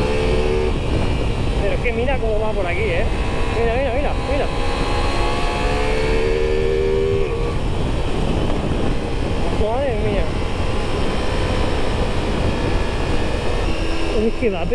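A motorcycle engine hums and rises and falls in pitch as it rides.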